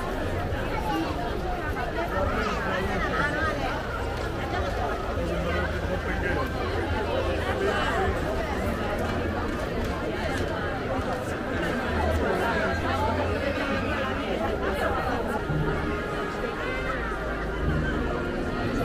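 A large crowd chatters and murmurs all around outdoors.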